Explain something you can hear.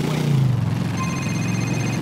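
A phone rings with a short electronic tone.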